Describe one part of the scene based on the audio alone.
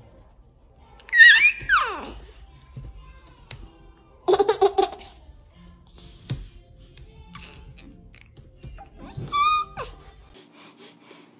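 A baby squeals and giggles close by.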